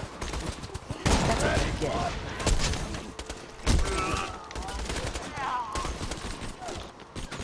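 A rifle fires bursts of shots.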